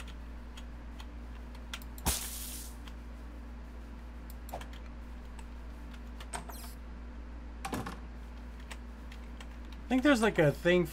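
Light footsteps patter across a floor.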